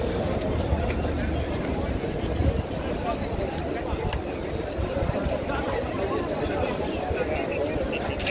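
A large crowd of men and women murmurs and talks outdoors.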